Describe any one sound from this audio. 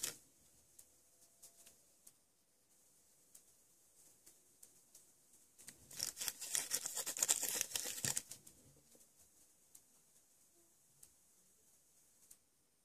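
A small brush dabs and taps lightly.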